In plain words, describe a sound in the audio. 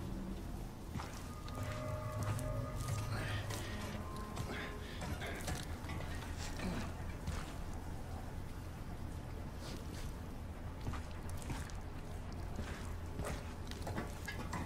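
Heavy boots clank on a metal floor.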